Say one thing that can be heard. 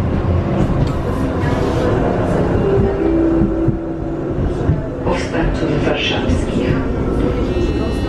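A tram's motor whines, falling in pitch as the tram slows.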